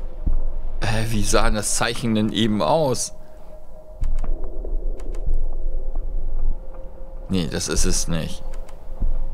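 A man speaks with animation through a headset microphone.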